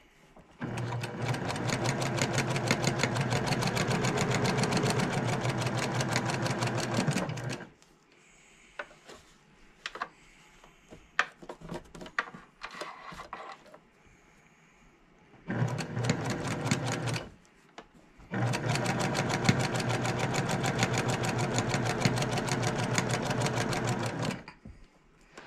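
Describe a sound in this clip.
A sewing machine stitches in fast, steady bursts.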